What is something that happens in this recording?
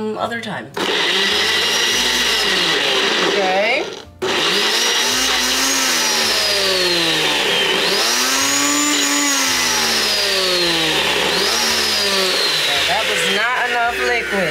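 A blender whirs loudly.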